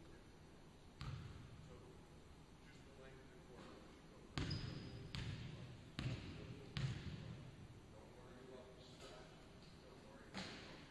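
A basketball bounces with a boom in a large echoing gym.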